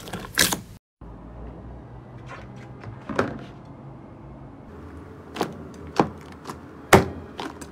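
Hands press and squelch a thick, sticky slime with soft wet pops.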